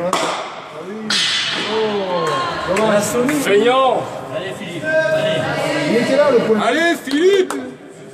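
Men talk with animation in a large echoing hall.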